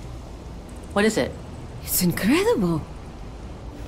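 A young man asks a question and exclaims in wonder, close by.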